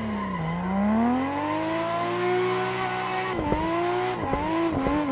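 A car engine revs high and falls and rises again as the car drifts.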